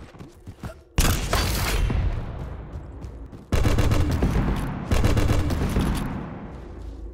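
Heavy gunshots boom in bursts with a ringing tail.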